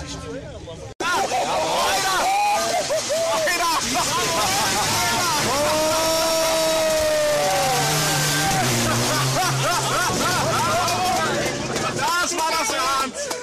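A racing car engine roars and revs hard, rising and falling in pitch as it speeds past.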